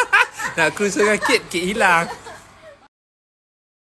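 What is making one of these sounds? A young woman speaks cheerfully and laughs close by.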